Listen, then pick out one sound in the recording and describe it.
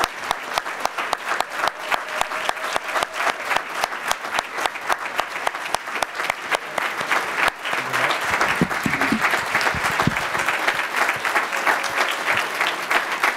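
A crowd claps along in a steady rhythm.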